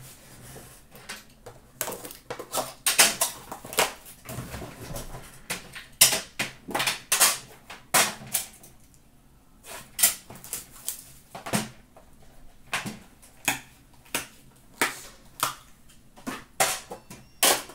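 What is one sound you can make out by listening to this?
Metal tins clatter and clink as hands handle them.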